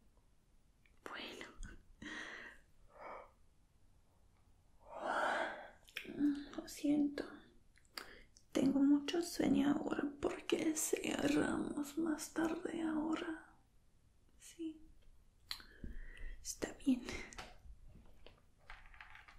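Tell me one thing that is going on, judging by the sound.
A young woman speaks softly and close to the microphone.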